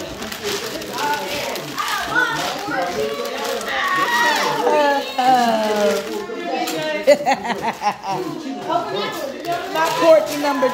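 Children and adults talk and shout excitedly nearby.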